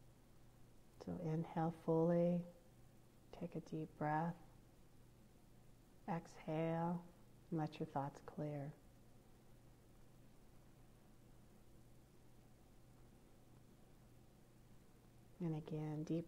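A middle-aged woman speaks calmly and in short phrases, close to a headset microphone, as heard over an online call.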